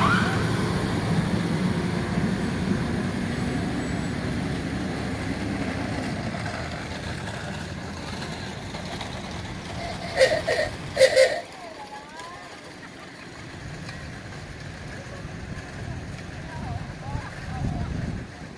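Golf carts whir past one after another.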